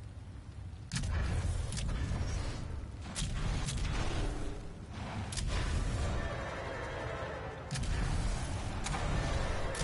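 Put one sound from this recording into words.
A gun fires in sharp, single bangs.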